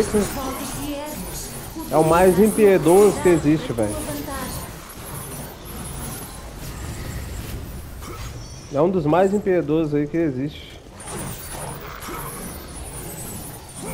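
Chained blades whoosh and slash repeatedly in a fast fight.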